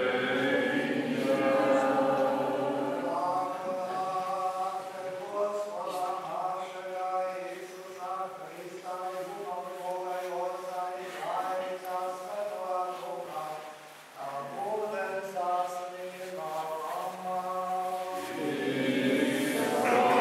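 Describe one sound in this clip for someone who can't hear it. An elderly man chants a prayer in a slow, sung voice in an echoing room.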